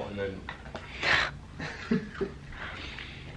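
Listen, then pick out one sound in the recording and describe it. A young woman laughs softly close by.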